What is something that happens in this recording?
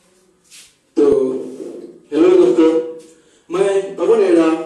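A young man speaks loudly into a microphone, heard through a loudspeaker.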